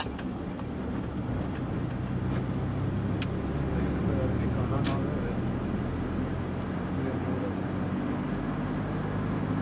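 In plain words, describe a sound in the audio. A car engine hums steadily from inside the moving car.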